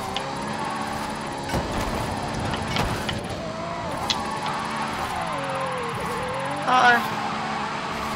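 A sports car engine roars and revs up and down.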